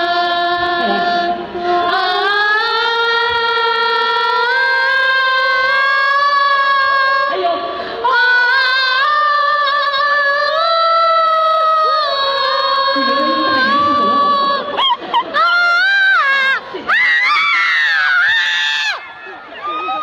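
A young man sings long, rising drawn-out notes.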